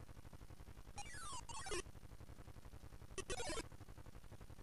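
A retro video game fires shots with short electronic zaps that fall in pitch.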